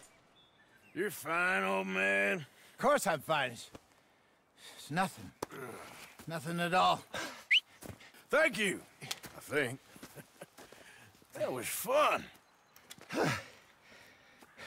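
An elderly man speaks in a strained, pleading voice.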